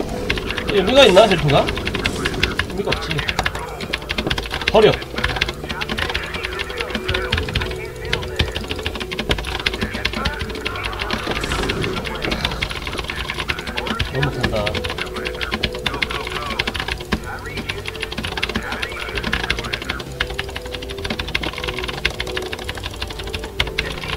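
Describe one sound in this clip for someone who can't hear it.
A keyboard and mouse click rapidly.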